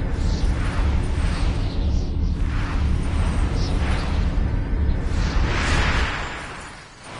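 A deep, loud whooshing roar rushes steadily, then cuts off.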